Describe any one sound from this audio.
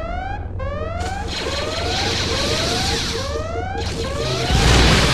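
Blasters fire rapid shots.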